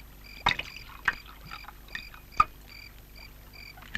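Liquid is poured from a bottle into a glass.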